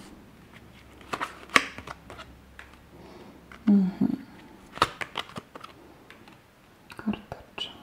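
A card taps down onto a cloth-covered table.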